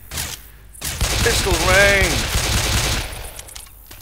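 A shotgun fires loud blasts in quick succession.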